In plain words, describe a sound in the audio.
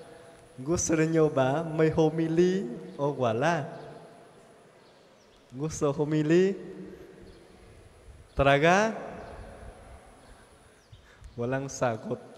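A man speaks warmly and with animation through a microphone, in a softly echoing room.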